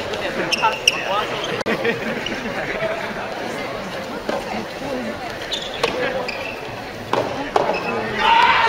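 A racket strikes a ball with sharp pops in a large echoing hall.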